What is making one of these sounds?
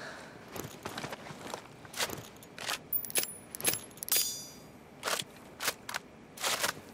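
Gear rustles and footsteps shuffle close by.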